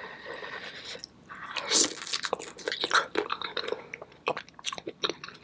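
A young woman chews and smacks her lips loudly close to a microphone.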